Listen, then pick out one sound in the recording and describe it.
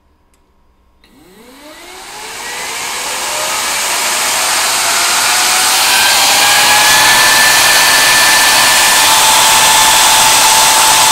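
A large fan spins up with a rising whine, then roars loudly and steadily.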